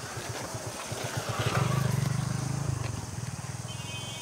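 A motorbike engine rumbles past.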